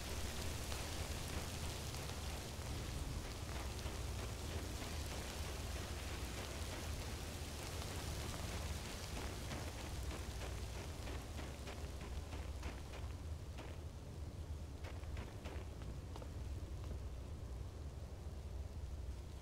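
A magic spell hums and crackles steadily close by.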